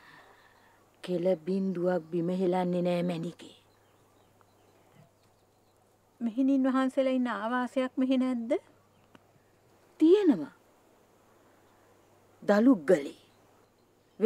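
A middle-aged woman speaks close by, in a calm and sorrowful voice.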